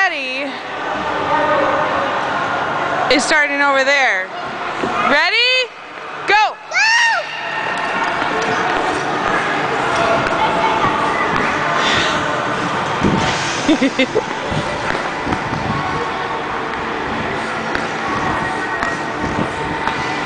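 Skate blades scrape across ice in a large echoing hall.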